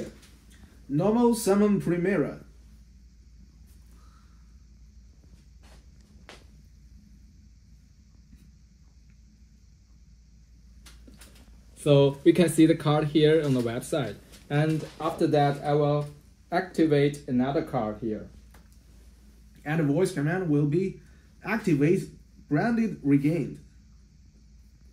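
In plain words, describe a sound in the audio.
A young man talks close by, calmly explaining.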